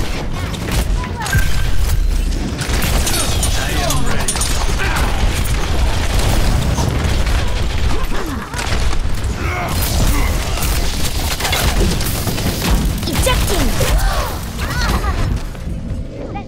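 Rapid gunfire crackles and blasts.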